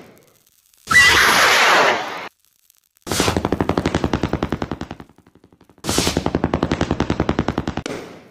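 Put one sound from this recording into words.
Firework rockets whoosh and crackle as they shoot upward.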